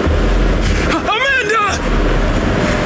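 A young man shouts out loudly.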